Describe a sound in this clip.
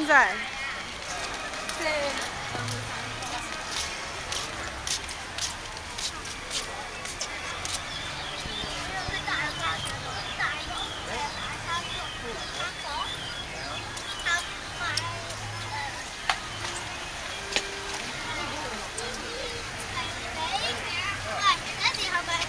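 A crowd of visitors chatters nearby outdoors.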